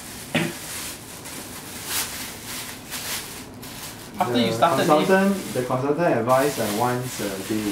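A small animal scrabbles and splashes in a plastic tub.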